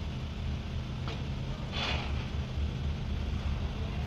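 A long metal roofing sheet rattles and clanks as it is hoisted.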